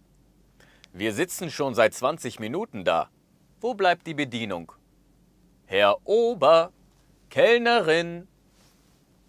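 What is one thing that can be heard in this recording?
A man speaks clear single phrases close to a microphone, with pauses between them.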